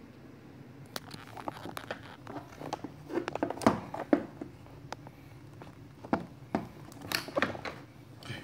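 A heavy belt knocks and rustles against clothing close by.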